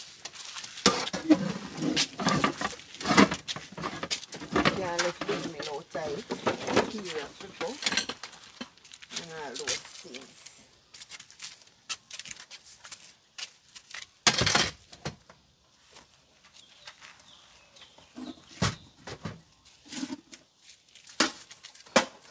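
Metal pots clank as they are loaded into a car boot.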